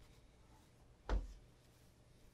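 A shoe thumps down onto a wooden table.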